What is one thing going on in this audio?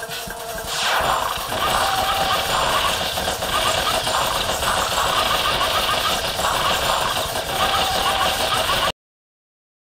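Bees buzz loudly in a swarm.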